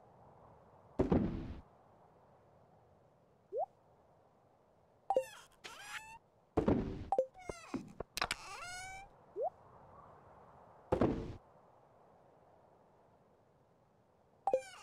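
Short electronic menu blips and chimes sound in a video game.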